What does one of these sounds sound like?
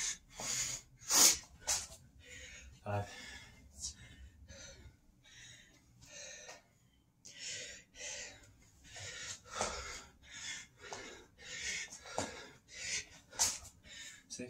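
Hands and feet thump on a hard floor.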